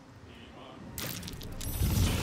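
A glowing dragon flares up with a rushing burst.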